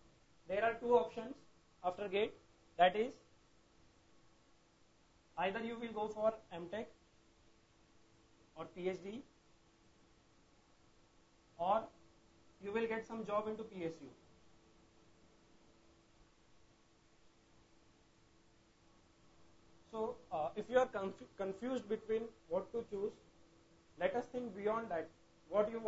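A man speaks calmly and clearly, as if teaching.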